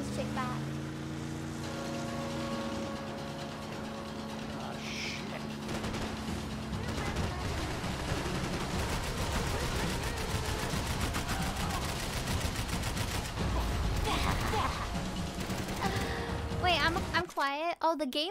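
A motorboat engine roars at speed.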